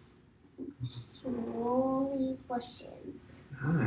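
A young girl speaks softly, close by.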